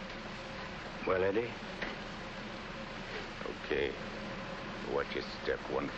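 A man speaks in short, tense bursts.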